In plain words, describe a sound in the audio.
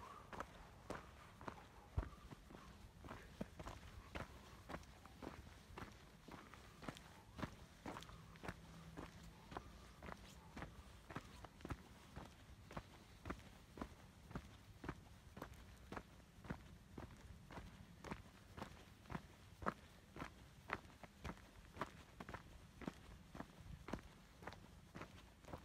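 Footsteps crunch steadily on a gravel trail.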